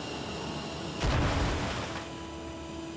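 A hover vehicle lands with a heavy thud and whoosh.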